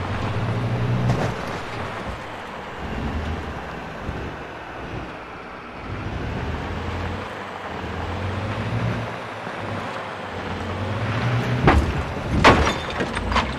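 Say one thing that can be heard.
A car engine hums and revs as the car drives along a bumpy dirt track.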